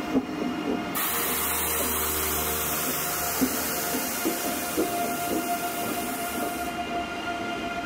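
A rushing hiss of air sweeps past the train.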